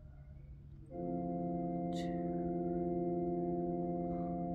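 An organ plays a sustained chord.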